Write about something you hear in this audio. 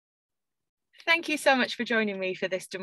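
A young woman speaks calmly through an online call microphone.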